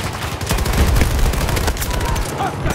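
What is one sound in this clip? A rifle fires a rapid, loud burst of shots.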